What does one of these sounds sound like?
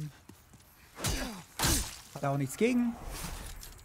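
A sword swishes and clangs in a strike.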